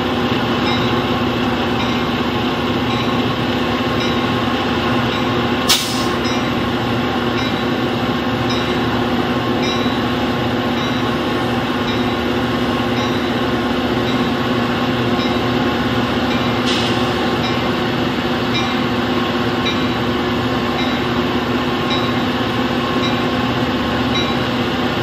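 Crossing bells ring in a fast, steady rhythm.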